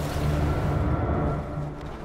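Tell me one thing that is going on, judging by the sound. A magic spell bursts with a whooshing rush.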